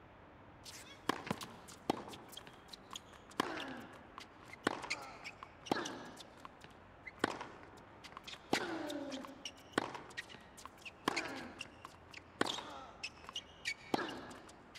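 A tennis ball is struck hard by rackets, back and forth.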